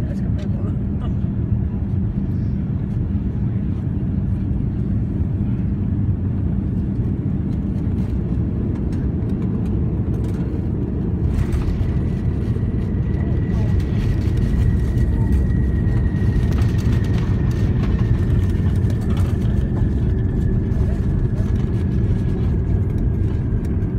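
A jet airliner's cabin rumbles with a steady, deep engine roar.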